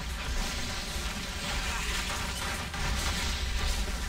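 Energy beams blast and hum in a video game.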